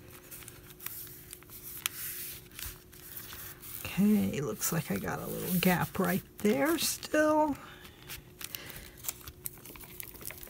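Hands rub and smooth a sheet of paper.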